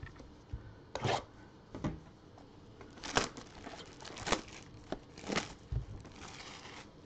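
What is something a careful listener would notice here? Cardboard packaging rips and crinkles as it is torn open.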